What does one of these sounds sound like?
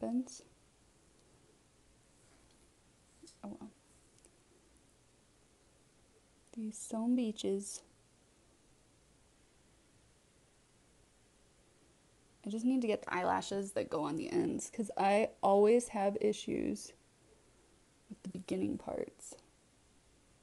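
A woman speaks calmly and close to a microphone, in short bursts.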